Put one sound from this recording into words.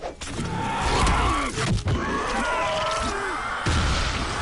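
A man screams in pain.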